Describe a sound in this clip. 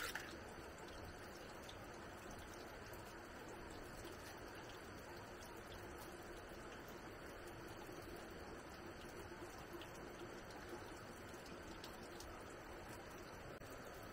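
Vegetables rustle and swish in water as hands wash them.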